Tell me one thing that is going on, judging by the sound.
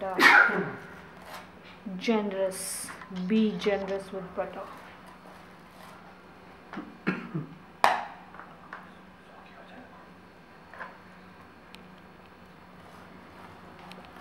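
A knife scrapes across crisp toast.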